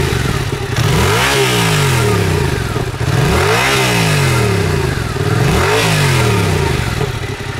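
A motorcycle engine revs sharply three times and falls back to idle.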